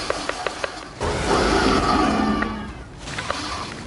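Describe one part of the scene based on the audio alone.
A magical blast whooshes and roars.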